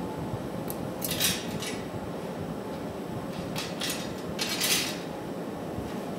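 Metal tools clink and clatter on a metal tray.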